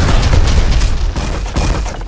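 Bullets strike a wall.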